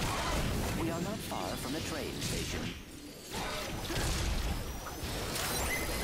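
Explosions burst in a video game.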